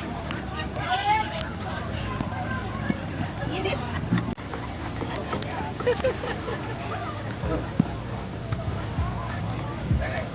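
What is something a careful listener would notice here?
Several men talk casually outdoors at a distance.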